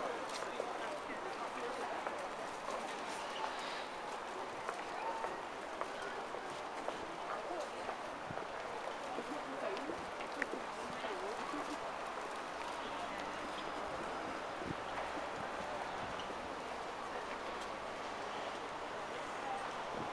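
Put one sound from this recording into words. Bare feet pad softly on a paved walkway.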